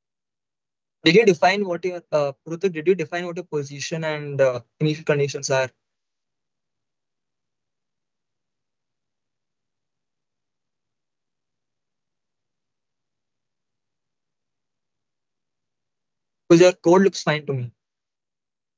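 A young man speaks calmly into a microphone, close by.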